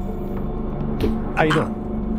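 A blunt blow lands with a dull thud.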